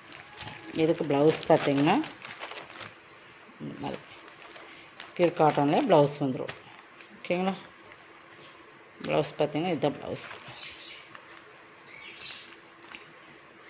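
Cloth rustles softly as hands fold and handle it.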